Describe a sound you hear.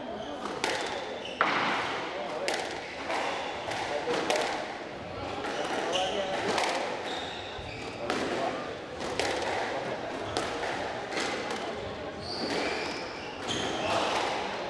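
A squash ball smacks off rackets and walls in a quick, echoing rally.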